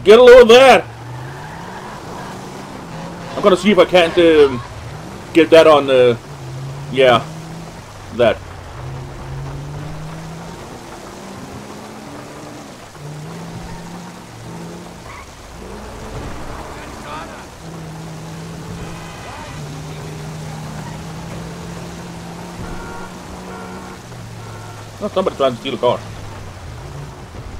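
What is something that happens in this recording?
A car engine hums and shifts pitch as the car drives.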